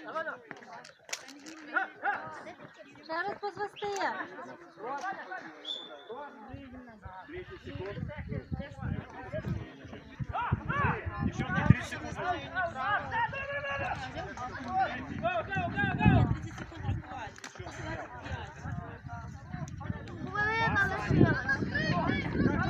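Children and adults shout and call out nearby, outdoors.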